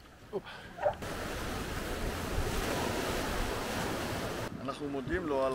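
Rapids rush and roar nearby.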